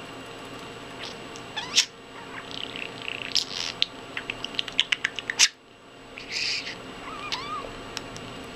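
A budgie chirps and twitters close by.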